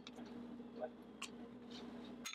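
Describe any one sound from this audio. A fork scrapes and taps on food in a pan.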